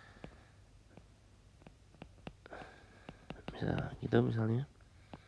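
A stylus taps lightly on a tablet's glass while writing.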